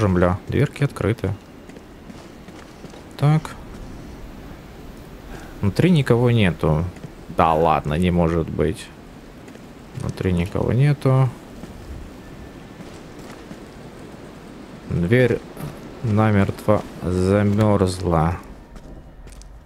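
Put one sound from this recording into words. Wind blows steadily outdoors in a snowstorm.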